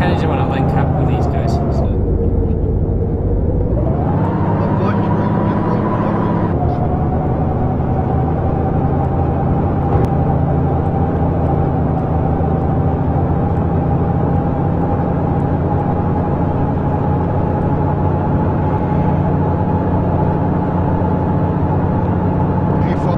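A diesel truck engine drones while driving.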